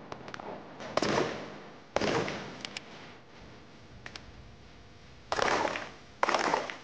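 Pistol shots crack outdoors and echo across open ground.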